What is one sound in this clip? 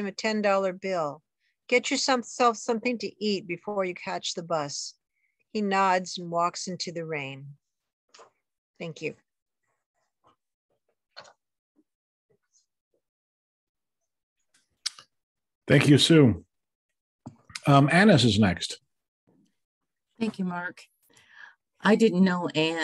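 A middle-aged woman talks with animation over an online call.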